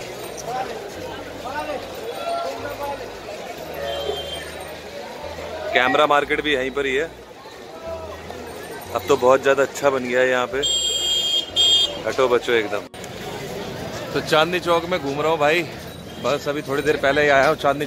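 A busy street crowd murmurs in the background.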